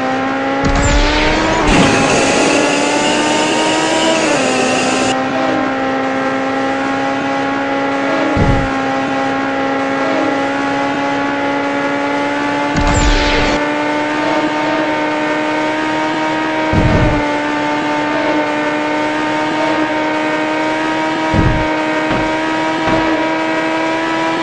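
A car engine roars steadily at high speed, its pitch climbing as it accelerates.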